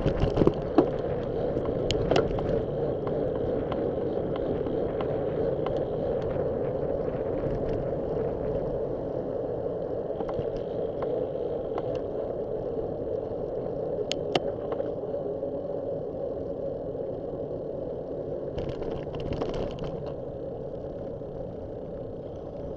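Bicycle tyres hum on a road.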